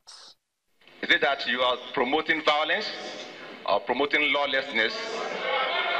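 A young man speaks with animation into a microphone in an echoing hall.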